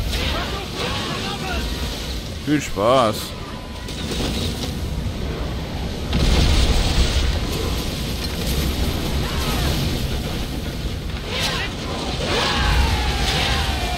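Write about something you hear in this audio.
Fire bursts roar as burning arrows strike a ship.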